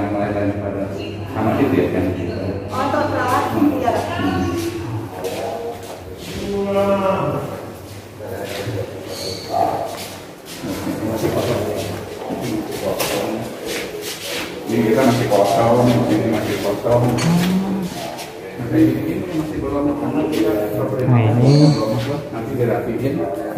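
A middle-aged man talks with animation nearby.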